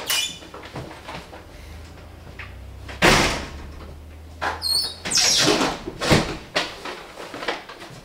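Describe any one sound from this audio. A paper bag crinkles and rustles.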